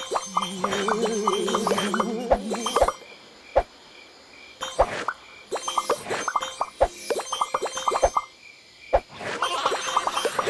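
Short bright game chimes ring in quick runs.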